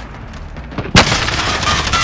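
A loud blast booms.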